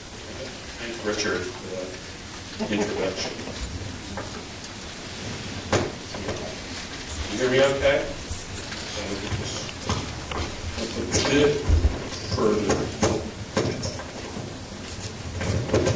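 A man speaks calmly into a microphone, echoing in a large hall.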